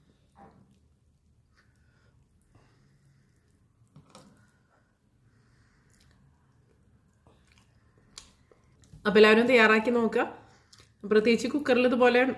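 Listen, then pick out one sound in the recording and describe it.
Fingers squish and mash soft food on a plate.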